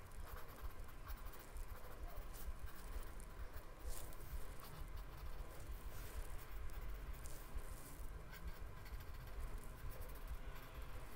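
A marker tip scratches and squeaks softly on paper.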